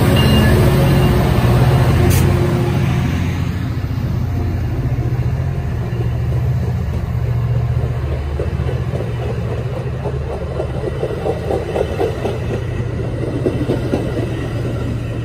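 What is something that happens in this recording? Train wheels clatter rhythmically over rail joints as the cars roll past.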